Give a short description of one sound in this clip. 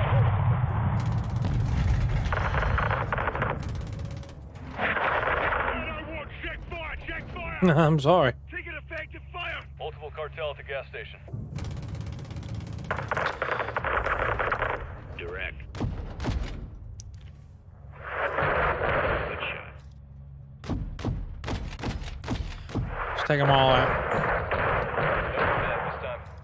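Explosions boom and rumble one after another.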